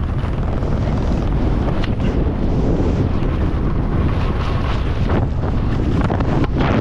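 Skis scrape and hiss over crusty snow at speed.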